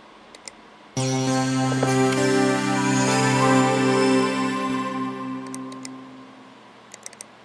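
A computer startup chime rings out and slowly fades.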